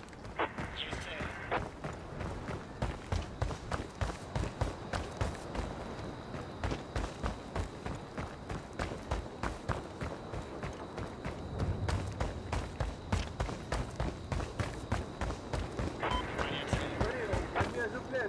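Boots run quickly over hard ground.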